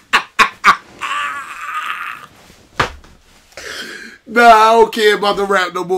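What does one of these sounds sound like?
A man laughs loudly through an online call.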